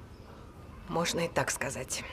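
A young woman speaks quietly up close.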